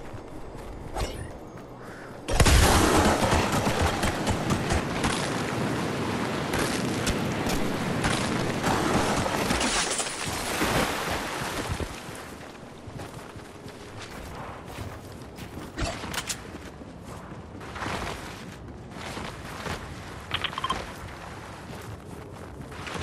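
Footsteps patter quickly over snowy ground.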